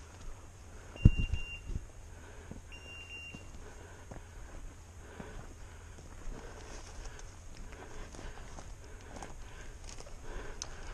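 Footsteps crunch and rustle on dry twigs and fallen needles.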